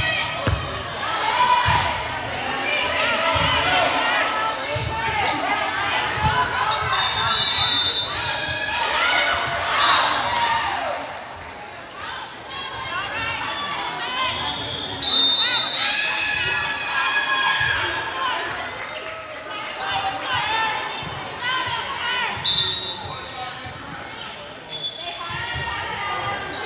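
Young players shout and call out to each other in a large echoing gym.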